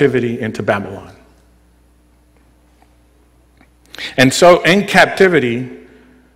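A man speaks calmly into a microphone, pausing briefly.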